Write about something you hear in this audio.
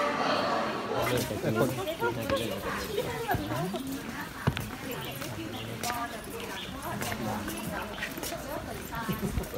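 Footsteps of a crowd shuffle along a path outdoors.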